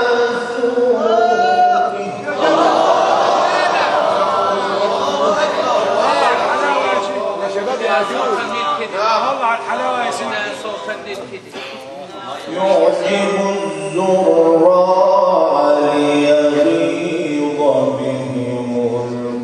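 A young man chants melodiously into a microphone, heard through a loudspeaker in an echoing hall.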